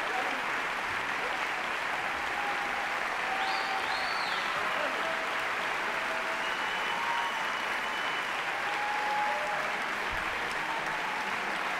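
A large crowd claps steadily in a big echoing hall.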